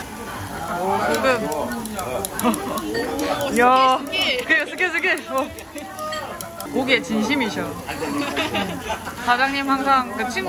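Metal tongs tap and clink against a grill plate.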